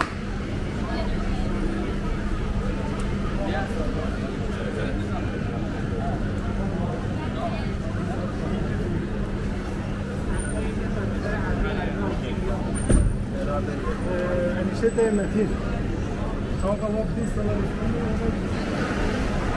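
A crowd of people chatters and murmurs on a busy street outdoors.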